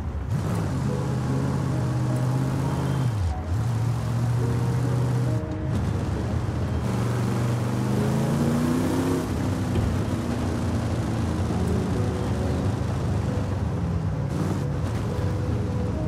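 A car engine revs hard, rising and dropping in pitch with gear changes.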